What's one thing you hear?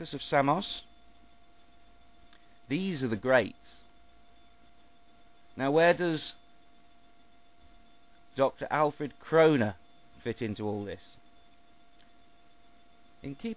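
A middle-aged man speaks calmly into a nearby microphone in short bursts with pauses.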